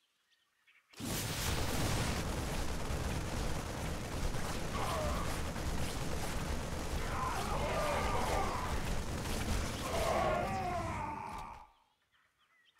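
Rapid gunfire crackles in a battle.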